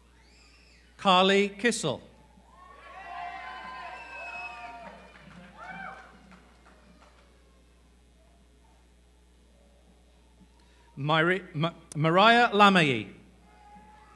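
A crowd whoops and cheers in a large echoing hall.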